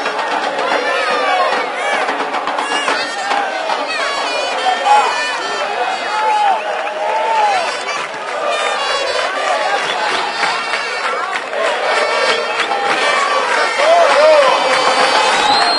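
A crowd of spectators chants and shouts steadily outdoors.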